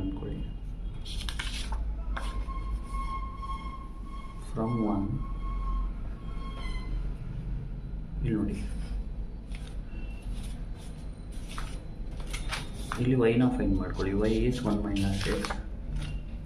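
Sheets of paper rustle as they are moved.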